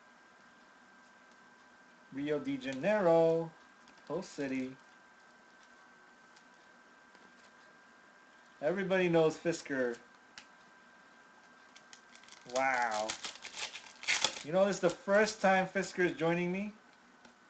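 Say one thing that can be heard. Trading cards rustle and slide against each other as they are shuffled.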